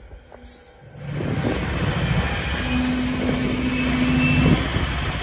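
A diesel locomotive engine rumbles loudly close by.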